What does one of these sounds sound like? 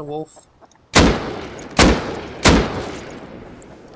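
A rifle fires a few loud shots that echo.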